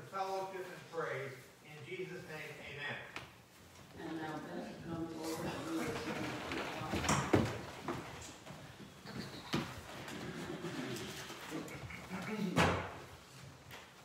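An older woman speaks calmly.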